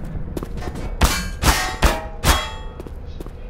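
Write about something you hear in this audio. A metal wrench clangs loudly against a wall several times.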